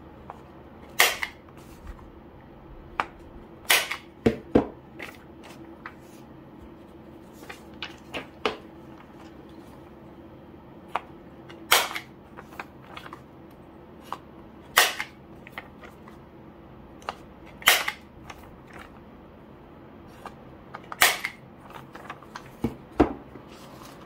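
A hand punch clicks sharply as it punches holes in paper.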